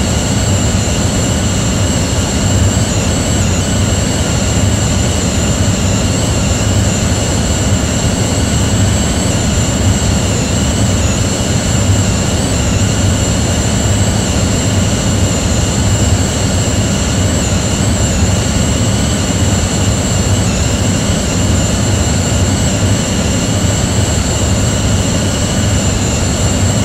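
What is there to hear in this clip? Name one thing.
Jet engines roar steadily in flight.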